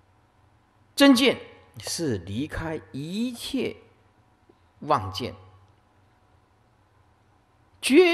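A middle-aged man speaks slowly and calmly into a microphone, with long pauses.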